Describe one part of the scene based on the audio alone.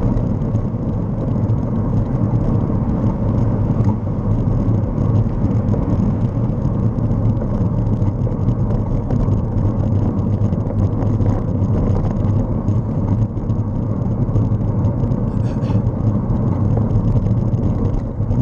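A vehicle's engine rumbles steadily.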